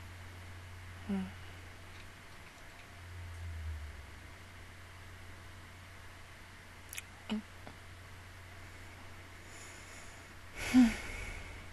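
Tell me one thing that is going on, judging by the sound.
A young woman speaks softly into a nearby microphone in short bursts.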